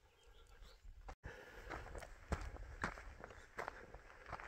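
Footsteps crunch on dry gravelly ground.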